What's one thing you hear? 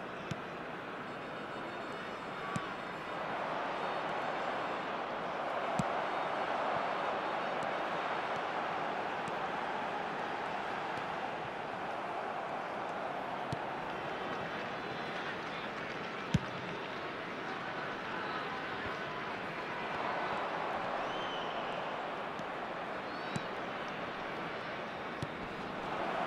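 A football is kicked with short, sharp thuds now and then.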